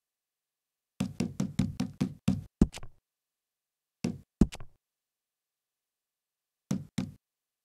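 Short menu clicks tick in quick bursts, with pauses between.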